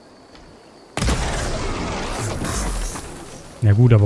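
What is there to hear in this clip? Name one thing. An arrow strikes a machine with a loud crackling burst.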